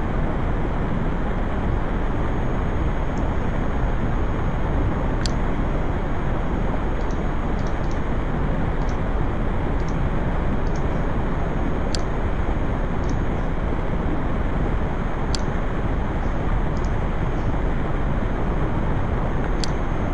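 Wind rushes steadily past a sailing boat.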